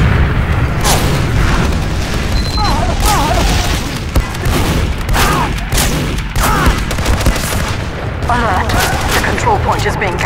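A gun fires rapid sharp shots.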